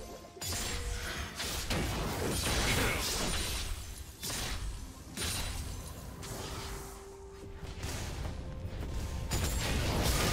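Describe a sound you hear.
Video game spell effects and blows burst and clash in quick succession.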